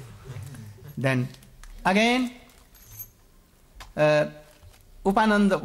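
An elderly man speaks slowly and deliberately into a microphone, in short bursts with pauses.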